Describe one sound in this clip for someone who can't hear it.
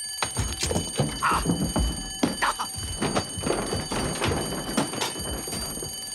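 A middle-aged man cries out in alarm.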